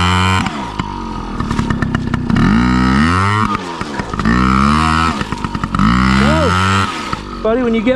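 A small electric motorbike whines, rising and falling in pitch as it revs in bursts.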